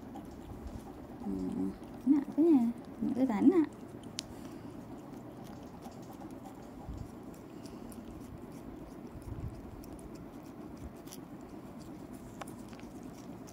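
A cat licks and laps wetly up close.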